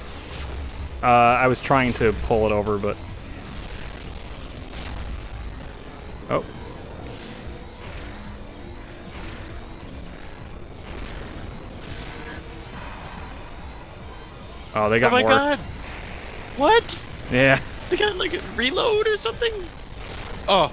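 Energy blasts zap and warble in loud bursts.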